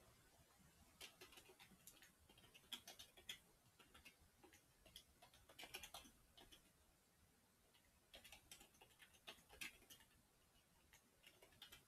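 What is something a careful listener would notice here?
Keys clack rapidly on a keyboard in short bursts.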